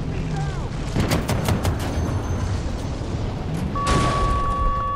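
A tank cannon fires with loud, sharp booms.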